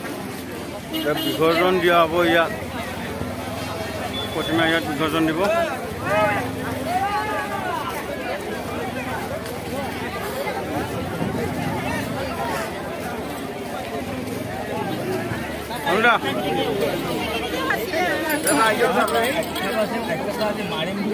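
Men nearby call out loudly with excitement.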